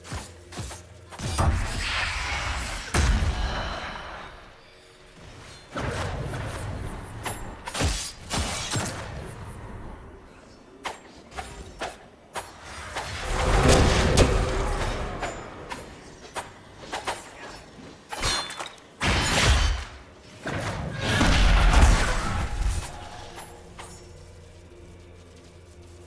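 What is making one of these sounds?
Weapons clash and strike in sharp hits.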